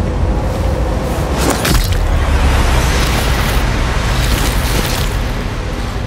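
A knife stabs into soft earth.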